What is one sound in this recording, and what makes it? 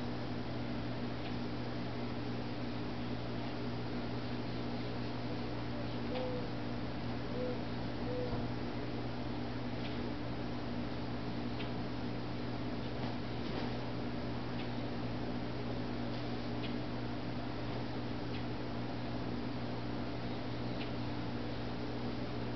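A wooden stick whooshes through the air as it is swung and twirled.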